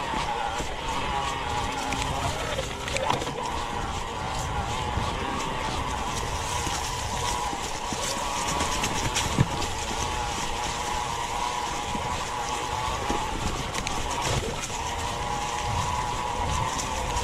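Wind rumbles across the microphone.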